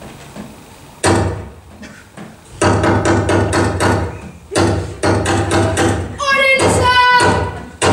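A boy speaks loudly through a microphone and loudspeakers in an echoing hall.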